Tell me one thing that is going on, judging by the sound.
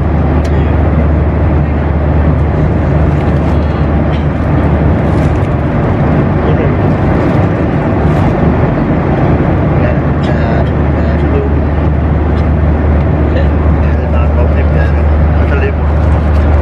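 A young man speaks close by, casually.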